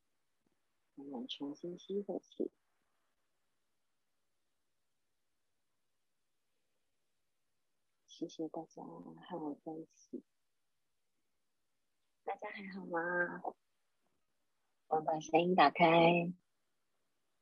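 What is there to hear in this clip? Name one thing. A woman speaks calmly and softly close to a microphone, with long pauses.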